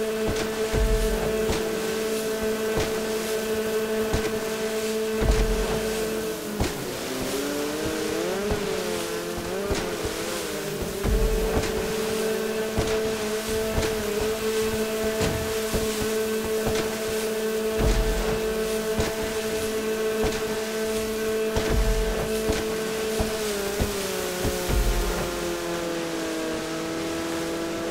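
Water splashes and slaps against a jet ski's hull.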